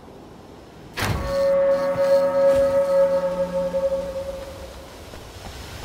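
A warning bell rings loudly and slowly fades away.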